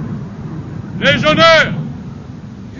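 A man shouts a command outdoors.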